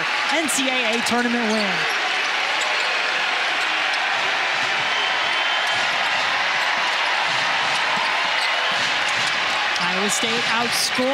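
A crowd murmurs steadily in a large echoing arena.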